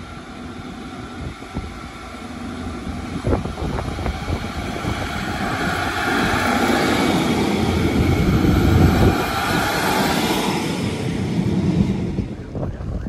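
A diesel train rumbles and clatters past close by.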